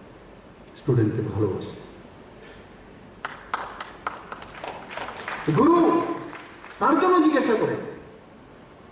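A man speaks forcefully into a microphone over a loudspeaker.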